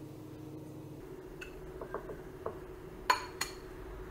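A rice scoop scrapes and taps in a cooker pot.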